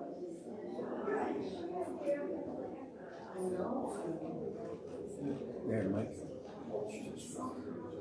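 A woman speaks calmly into a microphone in a reverberant hall.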